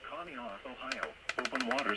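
A radio button clicks as it is pressed.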